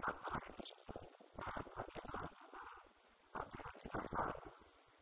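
An elderly man speaks calmly into a microphone, heard through a loudspeaker in a large room.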